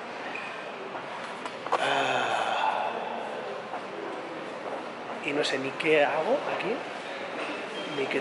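A young man speaks close up, with animation.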